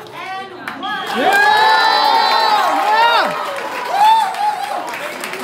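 Young people cheer and shout excitedly.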